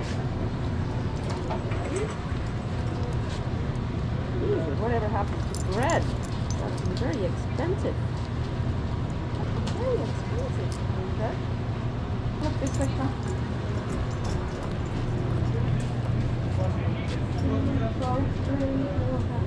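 Metal clips jingle and clink against each other.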